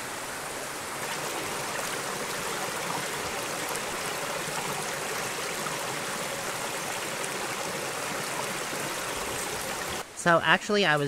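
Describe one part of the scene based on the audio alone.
A stream trickles and splashes over rocks.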